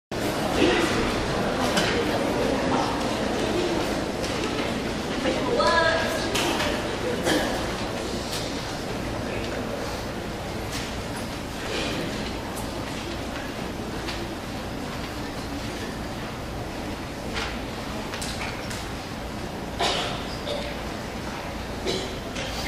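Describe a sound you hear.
Water jets hiss and splash steadily.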